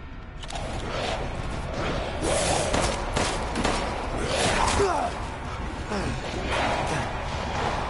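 A pistol fires several sharp shots.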